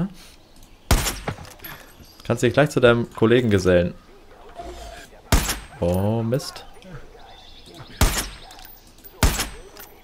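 A rifle fires single sharp, loud shots.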